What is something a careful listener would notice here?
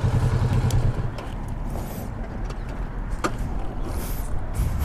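A motorcycle engine idles more quietly.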